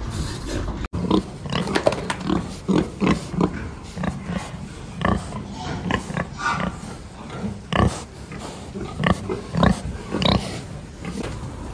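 Pigs grunt and snuffle close by.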